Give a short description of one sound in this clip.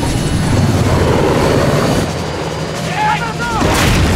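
Helicopter rotors thump loudly overhead.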